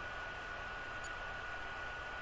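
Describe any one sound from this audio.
A short electronic blip sounds as a menu selection moves.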